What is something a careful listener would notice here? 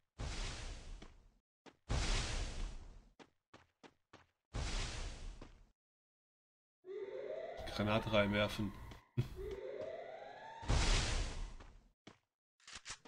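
Gunshots fire in short loud bursts.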